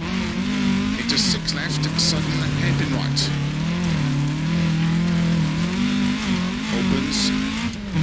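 A rally car engine roars steadily, shifting pitch as it changes speed.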